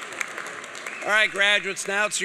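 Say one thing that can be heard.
People in a crowd cheer and whoop.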